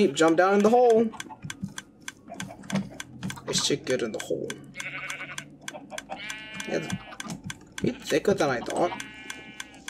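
A sheep bleats nearby.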